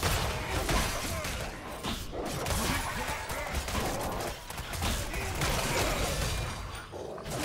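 Magical blasts and sharp hits crackle and thump in a fast fight.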